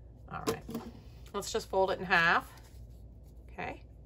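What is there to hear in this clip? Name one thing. Paper rustles softly as it is handled and folded.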